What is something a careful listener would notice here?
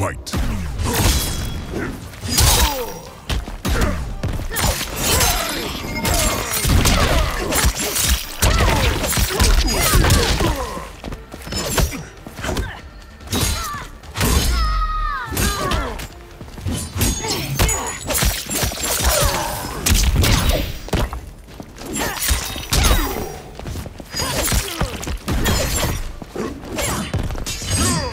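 Fighters grunt and cry out with effort.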